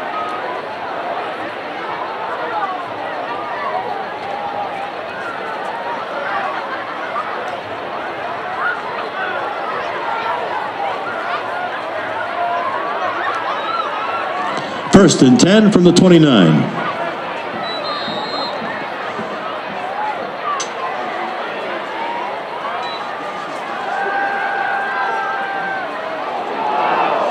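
A crowd murmurs and calls out in the stands outdoors.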